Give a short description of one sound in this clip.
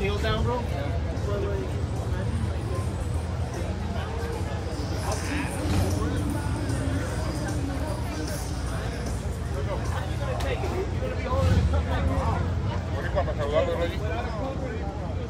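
A crowd of people chatters outdoors nearby.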